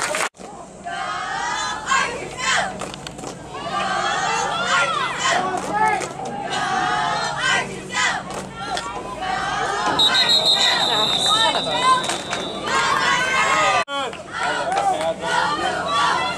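A crowd of spectators shouts and cheers outdoors.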